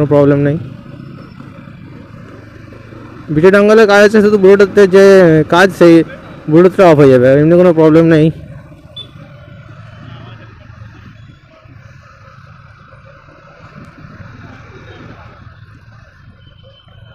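A motorcycle engine hums while cruising along a road.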